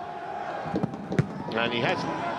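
A football is struck hard with a thud.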